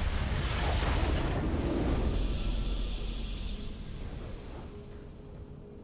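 A triumphant game fanfare swells loudly and then fades away.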